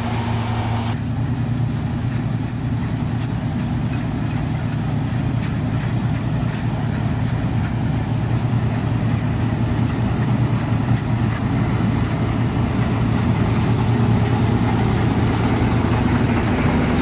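A combine harvester's header cuts through standing wheat.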